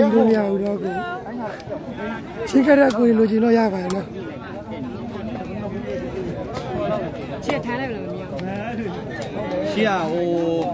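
A large outdoor crowd chatters and shouts loudly.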